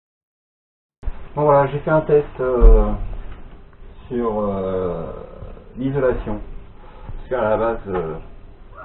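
A middle-aged man speaks calmly and with animation close by.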